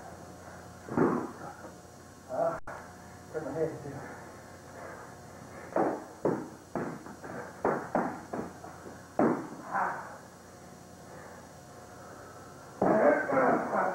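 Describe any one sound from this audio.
Padded sticks thud against each other and against bodies in quick bursts.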